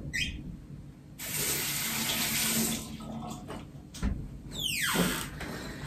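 A door creaks open.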